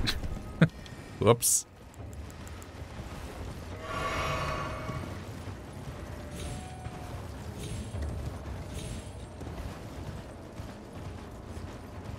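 Hooves gallop steadily over the ground.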